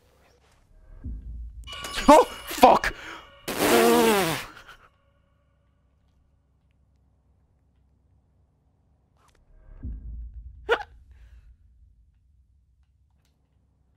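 A small metal hand mirror is picked up and handled.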